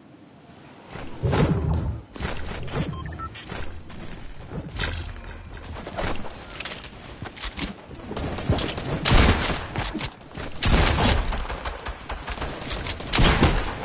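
Gunshots ring out in a shooting game.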